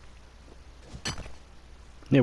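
A pickaxe strikes rock with a sharp knock.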